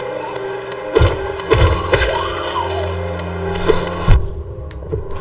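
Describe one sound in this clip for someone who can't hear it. Sharp slashing hits and bursts sound in quick succession.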